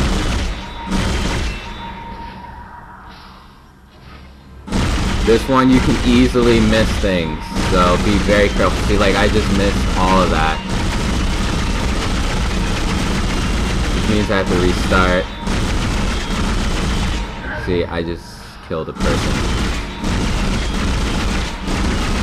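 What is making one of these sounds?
A sci-fi energy gun fires in short bursts.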